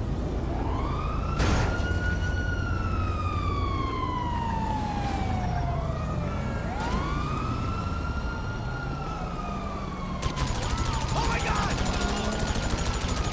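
A rocket whistles through the air, its pitch slowly falling.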